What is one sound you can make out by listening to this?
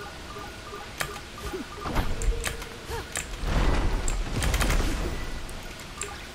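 Rocks whoosh and crash as they are smashed.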